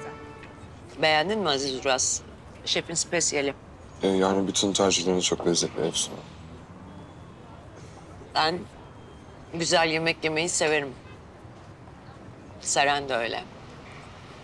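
A woman talks calmly, close by.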